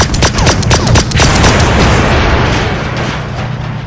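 A loud explosion roars and rumbles.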